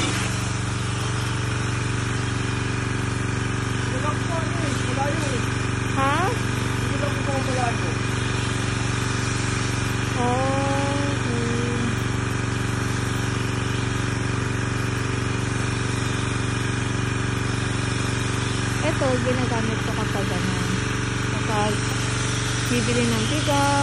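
A jet of water hisses as it sprays onto a car.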